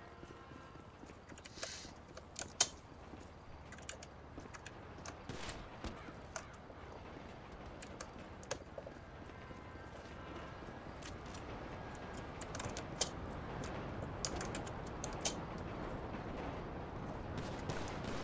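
Footsteps patter on a hard rooftop.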